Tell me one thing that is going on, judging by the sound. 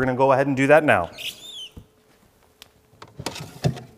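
A cabinet door clicks open.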